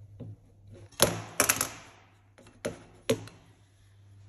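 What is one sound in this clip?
Metal parts clatter and knock against a metal surface.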